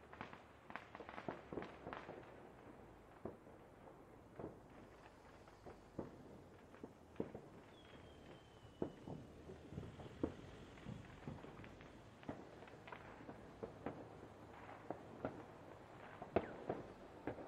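Fireworks bang and crackle in the open air, in irregular bursts.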